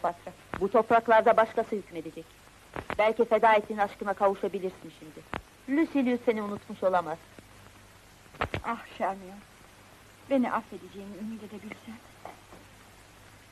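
A woman speaks calmly and firmly, close by.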